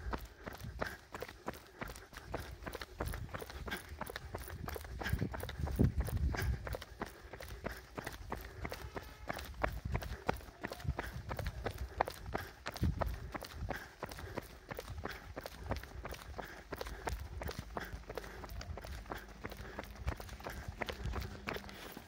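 Running shoes patter steadily on a paved road, close by.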